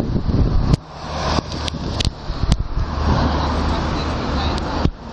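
City traffic rumbles in the distance outdoors.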